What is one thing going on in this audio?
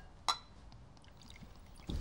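A man pours wine into a glass.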